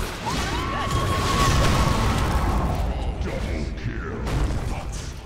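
Game swords clash and strike.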